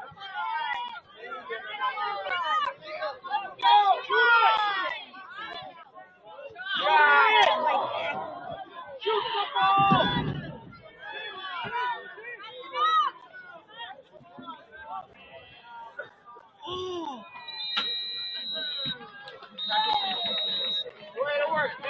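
A crowd of people shout and call out outdoors.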